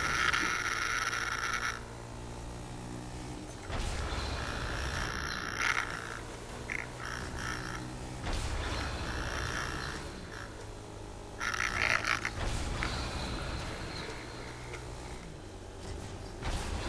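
A quad bike engine hums steadily as it drives along.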